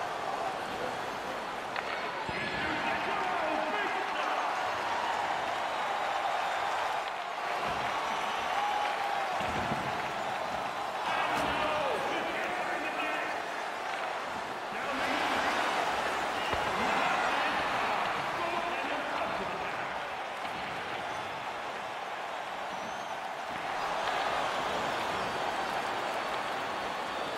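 Ice skates scrape and swish across the ice.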